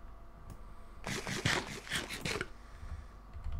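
Crunchy munching sounds of food being eaten come in quick bursts.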